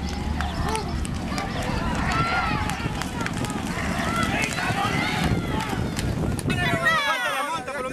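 A crowd of spectators cheers.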